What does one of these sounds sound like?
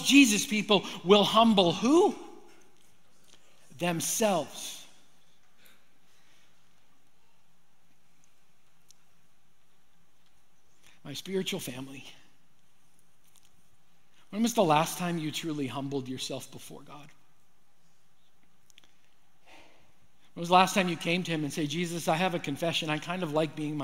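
A middle-aged man speaks with animation through a microphone, pausing often.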